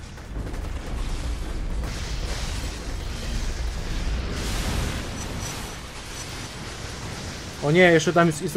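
Explosions and blasts rumble.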